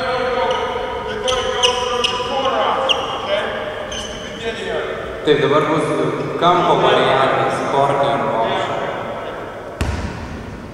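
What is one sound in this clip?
Young men and children talk and call out in a large echoing hall.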